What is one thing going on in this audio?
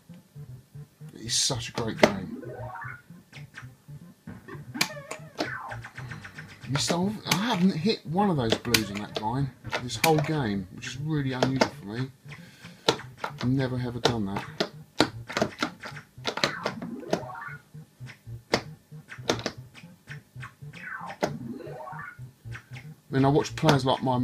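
An arcade game plays chirpy electronic sound effects and beeps.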